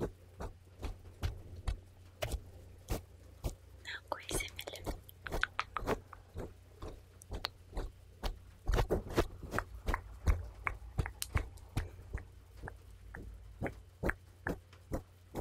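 Mouth sounds click close to a microphone.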